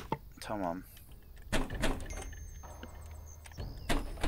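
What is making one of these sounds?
A wooden cabinet door clicks open.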